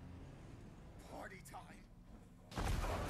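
A man shouts cheerfully.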